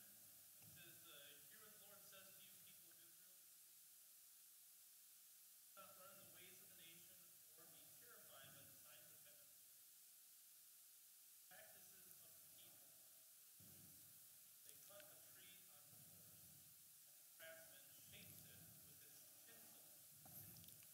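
A middle-aged man speaks calmly to an audience through a headset microphone.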